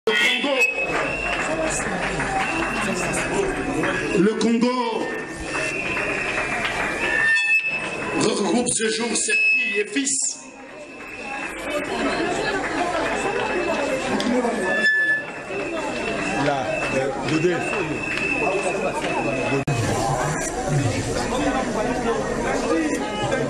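A large crowd chatters and shouts outdoors, heard close through an open doorway.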